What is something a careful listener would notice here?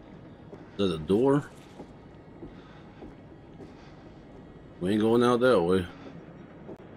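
A young man speaks briefly and loudly into a close microphone.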